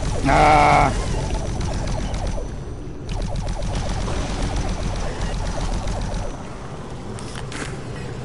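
A plasma gun fires rapid bursts of energy.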